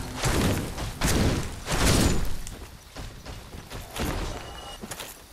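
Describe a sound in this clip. Heavy metal blows strike and clang in a fight.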